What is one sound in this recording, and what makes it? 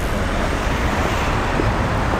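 Traffic rumbles in a city street.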